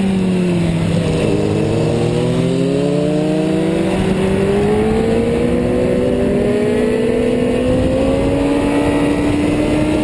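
Another motorcycle engine whines ahead.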